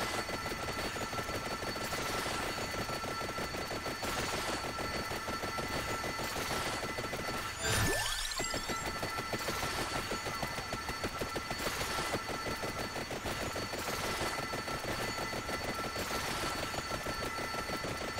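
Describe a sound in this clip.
Rapid game hit sounds patter constantly as weapons strike swarms of enemies.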